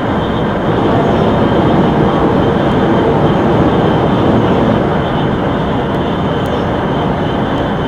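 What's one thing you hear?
A high-speed train roars along the rails with a steady rumble.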